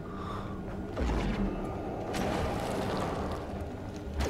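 An energy blast bursts with a crackling whoosh.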